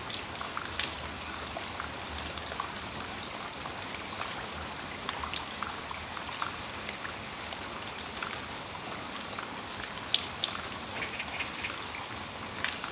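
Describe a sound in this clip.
Steady rain falls outdoors.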